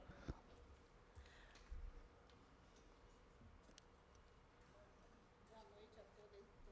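A woman speaks softly into a microphone in a large room.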